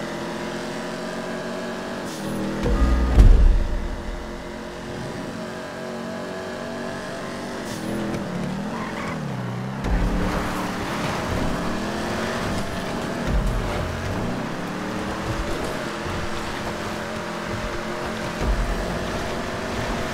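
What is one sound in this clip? A car engine roars and revs as it races along.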